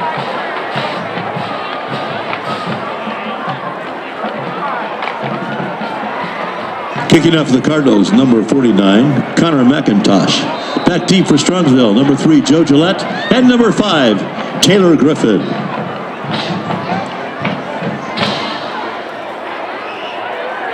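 A crowd chatters and cheers in a large outdoor stadium.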